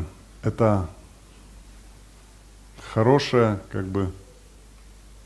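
A man speaks with emphasis through a microphone.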